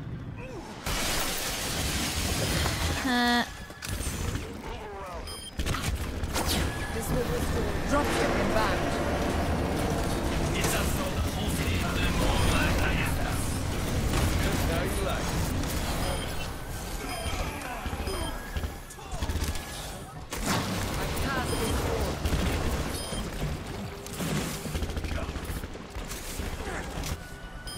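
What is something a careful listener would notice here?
Game sound effects chime and whoosh as abilities go off.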